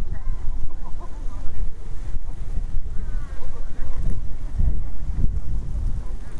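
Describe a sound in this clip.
A stroller's wheels roll over paving stones nearby.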